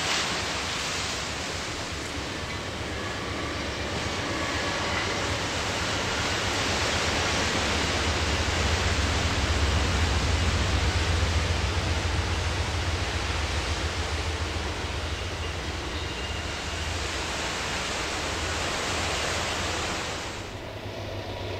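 Waves crash and wash onto a beach.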